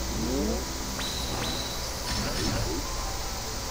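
A magical burst crackles during an attack.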